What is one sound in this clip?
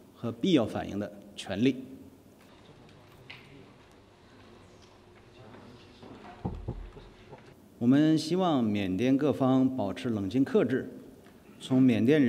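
A man speaks calmly and formally through a microphone.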